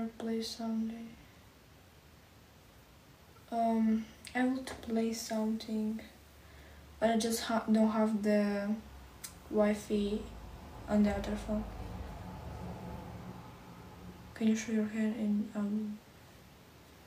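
A young woman sings softly close by.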